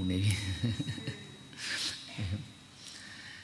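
An elderly man laughs softly.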